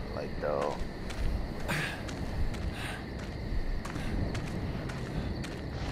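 Footsteps walk slowly over hard ground.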